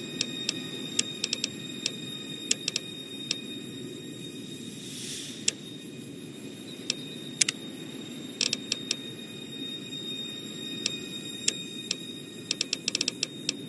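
Short interface clicks tick as entries are picked in a game menu.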